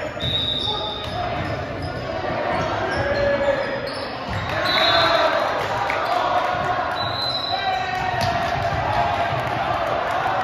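A crowd of young players and spectators chatter and call out.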